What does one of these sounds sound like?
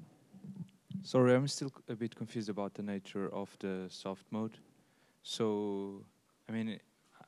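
An older man speaks calmly into a clip-on microphone, with pauses.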